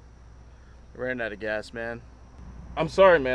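Another young man speaks calmly from inside a car.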